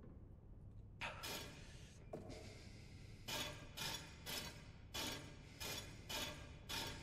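Metal rings grind and click as they rotate in a puzzle mechanism.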